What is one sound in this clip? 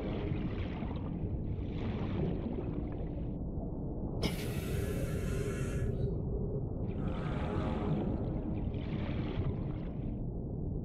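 A low, muffled underwater rumble goes on steadily.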